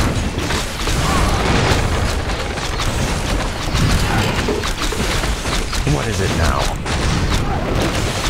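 Weapons clash and spells crash in a loud battle.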